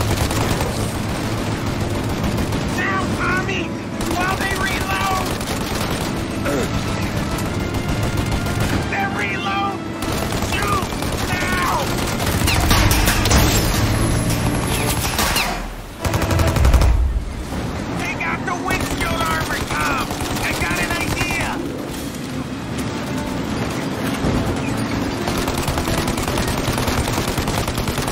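A machine gun fires rapid bursts of shots.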